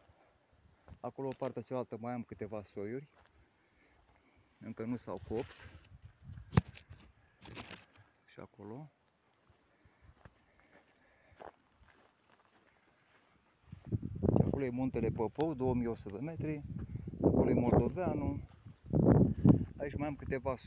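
A man speaks close by, calmly and then with more animation.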